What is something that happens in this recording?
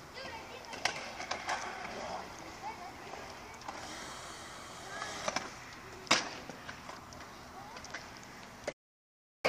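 Skateboard decks clack sharply on concrete.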